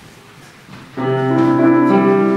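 A flute plays a melody.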